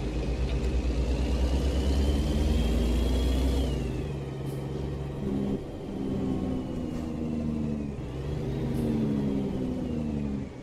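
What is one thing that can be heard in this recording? A truck's diesel engine rumbles steadily and changes pitch as it shifts gears.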